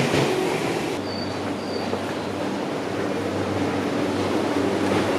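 A train's motors hum steadily while it stands at a platform.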